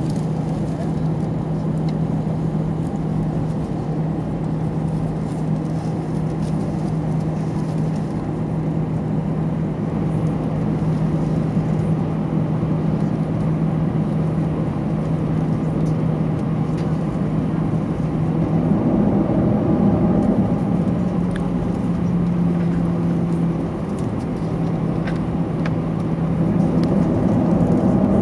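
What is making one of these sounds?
Airplane wheels rumble over a runway.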